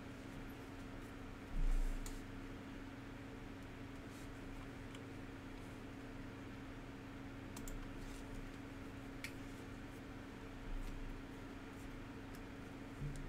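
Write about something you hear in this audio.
Trading cards rustle and slide as they are flipped through by hand.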